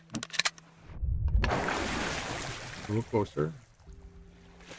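Water splashes and rushes as a swimmer breaks the surface.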